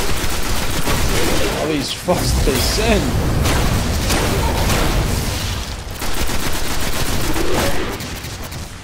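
Rapid gunfire crackles and booms.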